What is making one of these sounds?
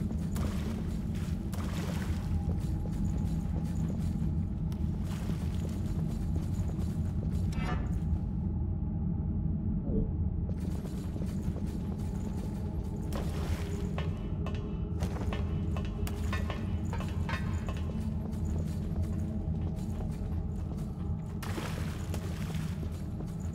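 Footsteps patter quickly across a stone floor.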